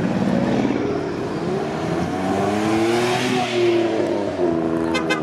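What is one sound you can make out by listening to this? A small car engine hums as it drives by.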